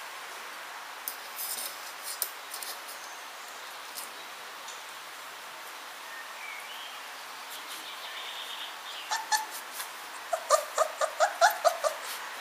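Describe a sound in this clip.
A puppy's claws click and patter on a hard floor.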